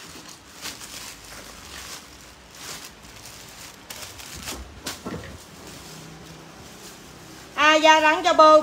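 Plastic bags rustle and crinkle close by.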